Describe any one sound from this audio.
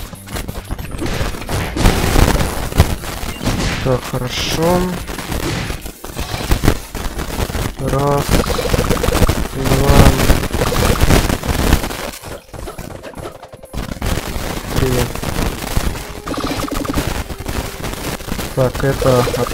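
Gunshots pop in quick bursts.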